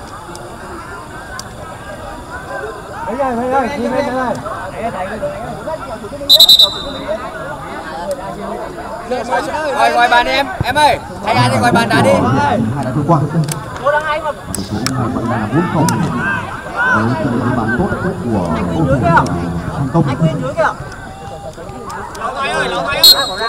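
Men in a small crowd of spectators chatter and call out nearby, outdoors.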